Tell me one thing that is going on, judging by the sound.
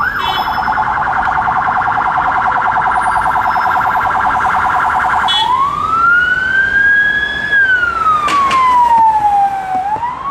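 A van engine hums as it drives by.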